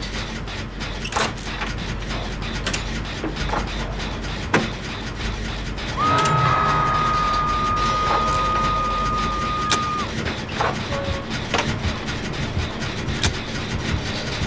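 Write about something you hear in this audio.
A machine rattles and clanks as it is worked on by hand.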